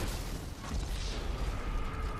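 A car crashes with a loud crunch.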